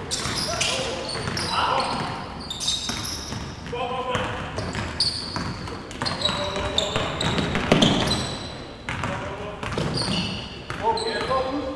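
A basketball bounces on a hard floor in an echoing gym.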